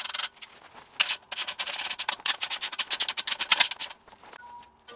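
A ratchet wrench clicks rapidly as a nut is tightened.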